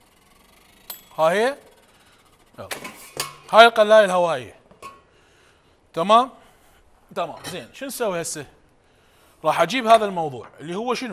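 A man speaks calmly and steadily, close by.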